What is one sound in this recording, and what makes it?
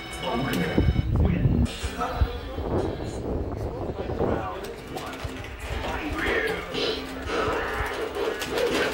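Young men talk loudly nearby.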